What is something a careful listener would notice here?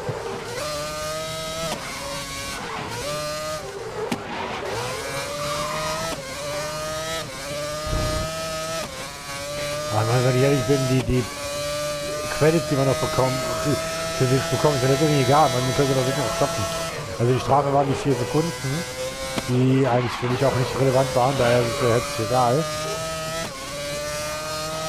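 A racing car engine screams at high revs, rising in pitch and dropping sharply with each gear change.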